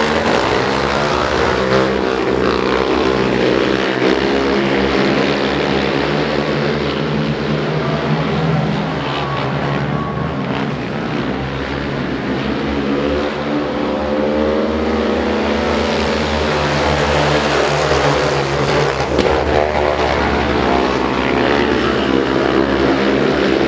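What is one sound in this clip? Quad bike engines roar and whine loudly as they race past.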